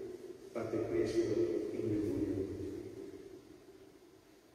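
An elderly man chants through a microphone in a large echoing hall, the sound slowly fading.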